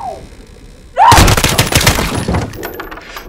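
A rifle fires a quick burst of loud shots indoors.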